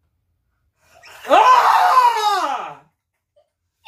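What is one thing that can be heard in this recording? A young boy growls loudly into a microphone.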